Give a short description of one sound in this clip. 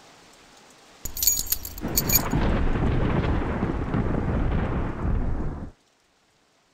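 Clothing and gear rustle as a body is searched.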